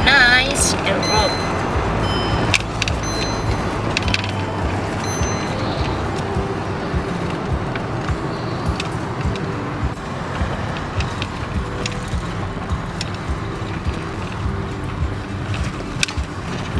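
Light rattles and clicks sound inside a moving car.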